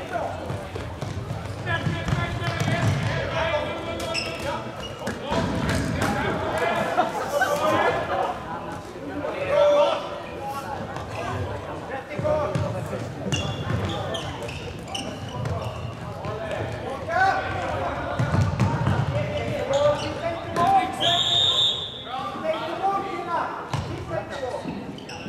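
Voices of spectators chatter nearby in a large echoing hall.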